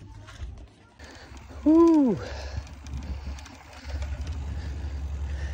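Bicycle tyres rumble over a bumpy dirt trail.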